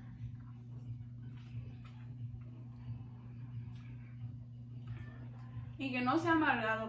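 A young woman slurps and chews noodles close by.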